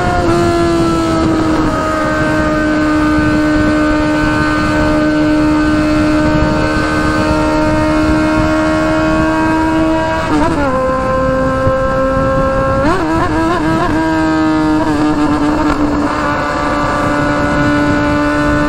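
A motorcycle engine hums steadily, rising and dipping in pitch as the rider shifts gears.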